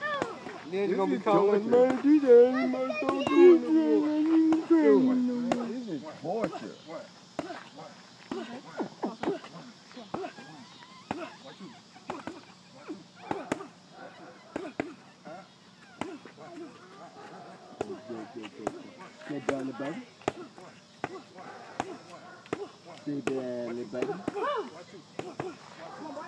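Punches thump against padded mitts in quick bursts.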